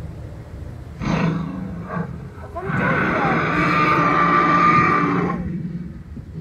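A dinosaur model lets out a loud, growling roar through a loudspeaker.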